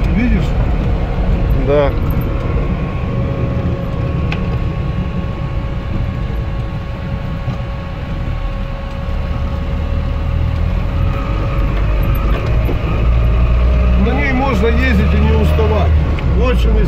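A car engine hums steadily from inside the car as it drives.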